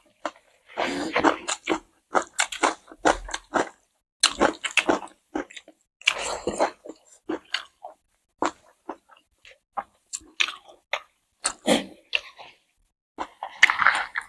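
Hands squish and scoop food close to a microphone.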